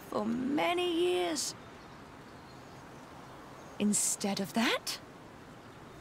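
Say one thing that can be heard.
A woman speaks calmly and firmly, close by.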